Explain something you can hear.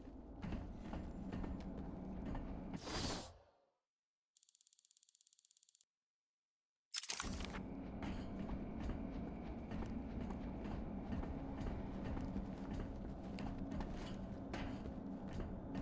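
Footsteps clank across a metal grate.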